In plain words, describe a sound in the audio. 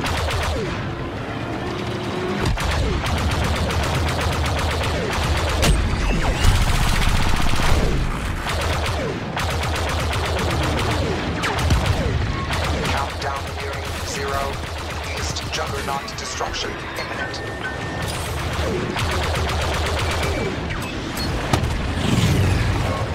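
Starfighter engines roar and whine steadily throughout.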